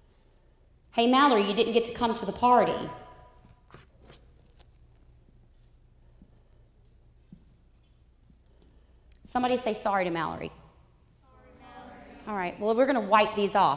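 A woman speaks loudly through a microphone in a large echoing hall.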